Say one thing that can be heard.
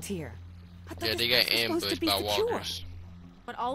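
A woman speaks calmly and firmly.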